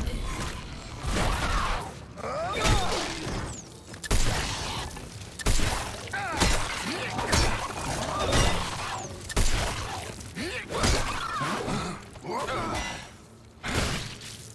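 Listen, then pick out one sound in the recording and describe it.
Monsters shriek and snarl close by.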